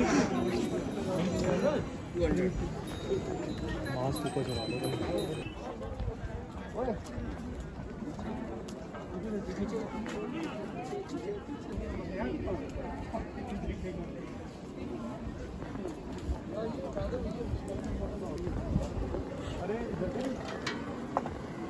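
A crowd of people chatters all around outdoors.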